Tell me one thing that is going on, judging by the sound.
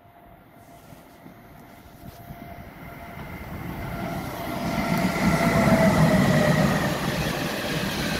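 An electric locomotive approaches and roars past at speed.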